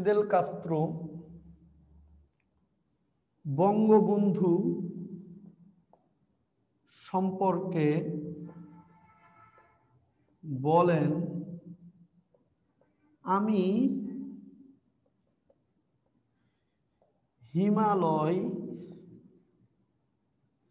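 A young man speaks calmly in short phrases with pauses.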